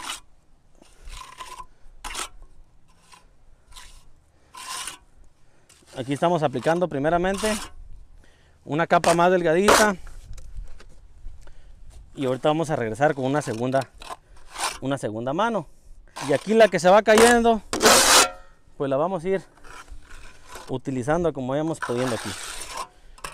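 A trowel scrapes wet mortar against concrete block.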